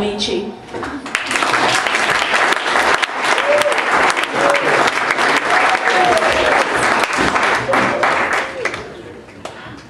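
An audience cheers and applauds loudly in a hall.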